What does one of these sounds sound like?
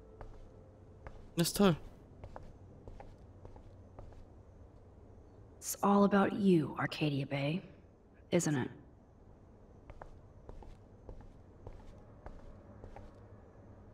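Footsteps tread softly.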